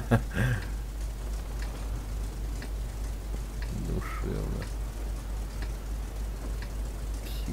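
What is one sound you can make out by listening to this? Tank engines idle with a low, steady rumble.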